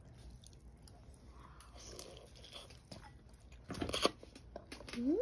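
A young girl slurps noodles.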